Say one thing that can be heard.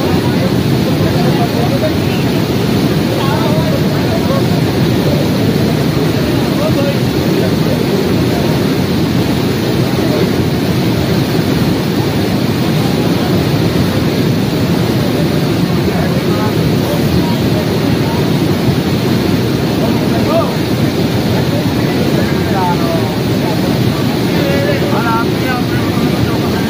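Men talk faintly in the background.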